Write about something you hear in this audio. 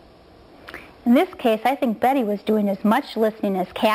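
Another middle-aged woman speaks calmly into a microphone.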